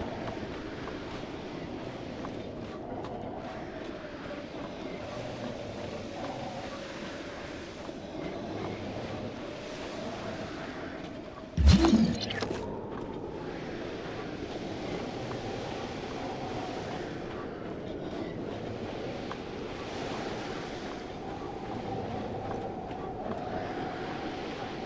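Rain and wind roar steadily outdoors.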